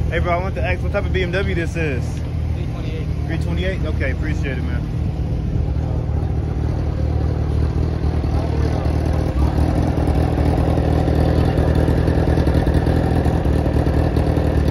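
Car engines rumble and idle loudly nearby.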